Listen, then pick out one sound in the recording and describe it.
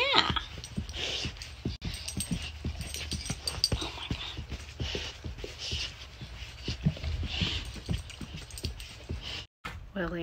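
Bedding rustles as dogs move about.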